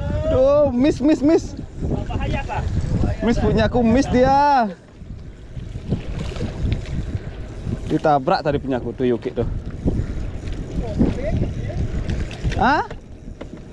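Waves slosh and splash against a boat's hull.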